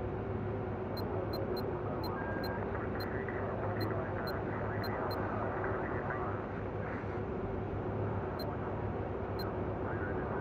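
Short, sharp menu clicks tick several times.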